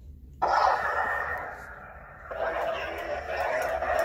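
A toy lightsaber hums and swooshes as it is swung.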